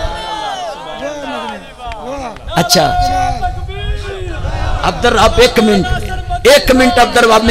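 A man sings or recites loudly with feeling through a microphone, heard over loudspeakers.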